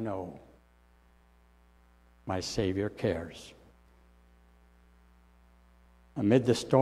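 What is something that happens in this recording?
An elderly man speaks slowly and calmly into a microphone in a large echoing room.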